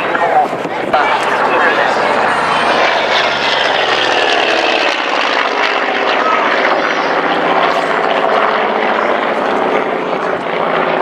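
A propeller plane's engine roars overhead, its pitch slowly falling as it passes.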